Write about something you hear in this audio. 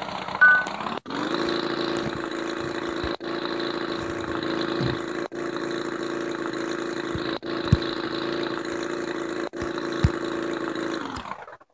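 A motorbike engine revs steadily.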